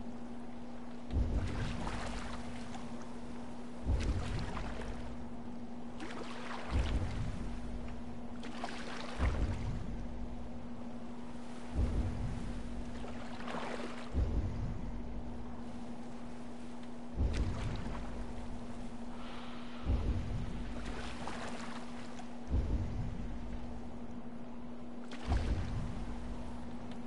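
Waves wash steadily around a boat on open water.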